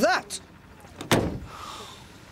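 A man knocks on a door.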